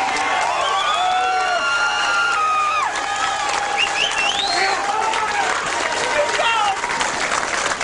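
Several men clap their hands in an echoing hall.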